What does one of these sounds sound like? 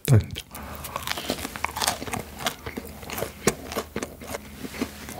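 A young man chews food noisily close to a microphone.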